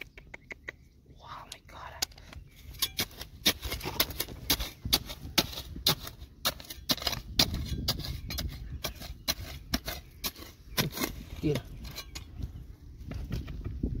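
A metal trowel scrapes and clinks against stony soil.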